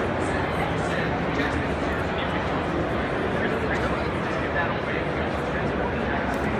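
A crowd of people chatter all around in a large, echoing hall.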